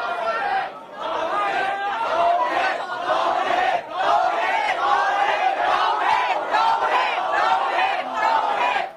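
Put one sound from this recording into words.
Men shout angrily close by.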